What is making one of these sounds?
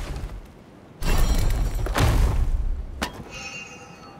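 A heavy wooden chest creaks open.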